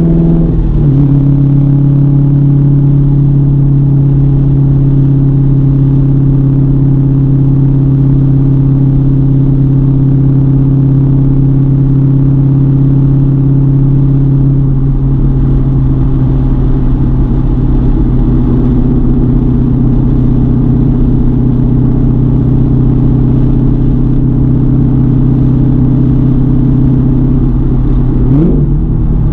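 A car engine drones loudly and steadily from inside the cabin.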